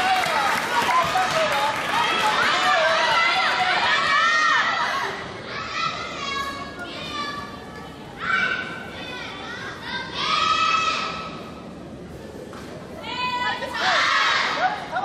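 Many people talk and call out in a large echoing hall.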